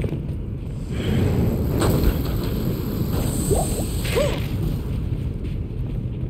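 A magic spell bursts with a loud whoosh.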